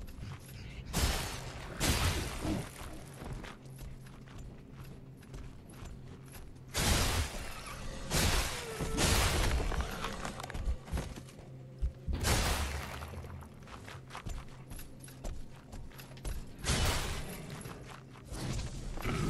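A heavy weapon strikes with loud impacts.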